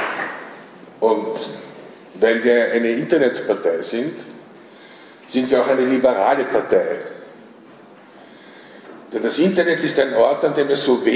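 An older man speaks calmly into a microphone, heard through loudspeakers in a large hall.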